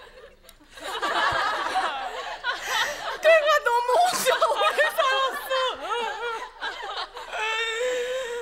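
A middle-aged woman wails and sobs loudly.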